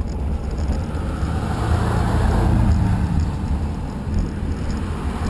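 A car drives past close by with a rising and fading whoosh.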